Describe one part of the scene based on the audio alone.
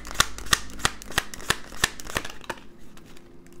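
Playing cards flick and riffle quickly as they are shuffled by hand.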